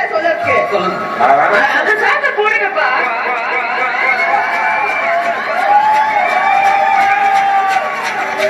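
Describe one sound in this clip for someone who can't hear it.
Dance music with singing plays loudly over loudspeakers.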